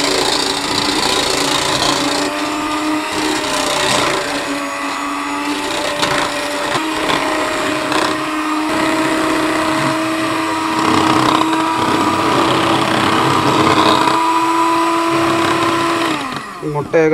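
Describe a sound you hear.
An electric hand mixer whirs steadily as it beats liquid in a metal bowl.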